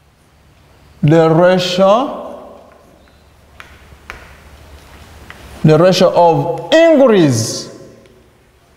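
A man speaks aloud in a slow, drawn-out teaching voice.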